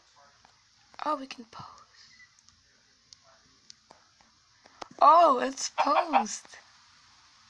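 A dog whines softly.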